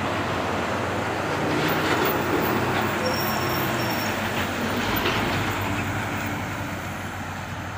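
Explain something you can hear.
A truck passes close by with a loud rush of tyres.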